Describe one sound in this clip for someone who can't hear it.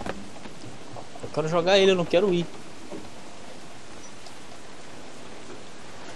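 Waves wash steadily against a wooden ship.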